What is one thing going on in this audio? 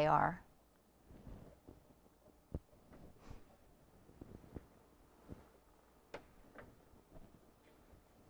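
Fabric rustles and shifts.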